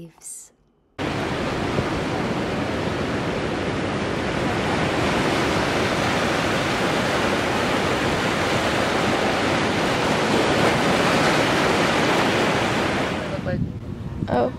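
Waves wash steadily onto a beach.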